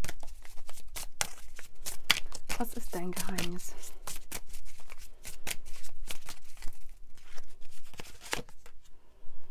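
Cards are shuffled and tapped together in hands.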